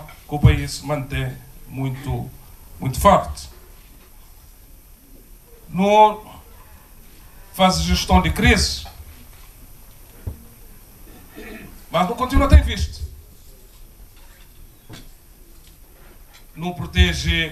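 A man speaks slowly into a microphone through loudspeakers, with pauses.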